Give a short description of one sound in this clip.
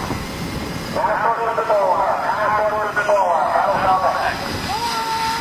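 Several men shout excitedly close by.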